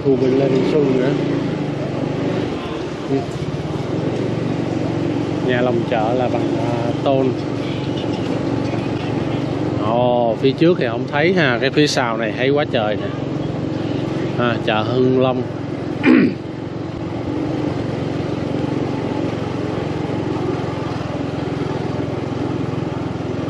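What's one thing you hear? A motorbike engine hums steadily at low speed.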